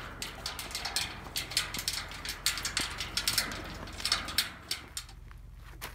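A dog's claws click and tap on a metal walkway.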